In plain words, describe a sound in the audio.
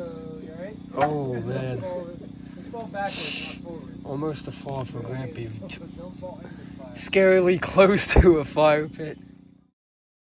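A man talks casually nearby outdoors.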